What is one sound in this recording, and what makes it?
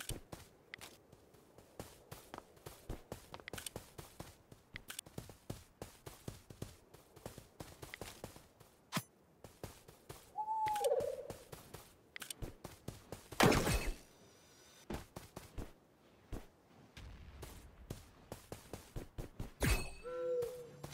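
Quick light footsteps tap on hard blocks.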